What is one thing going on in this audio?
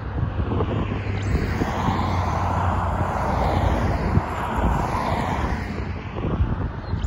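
Cars whoosh past on a road.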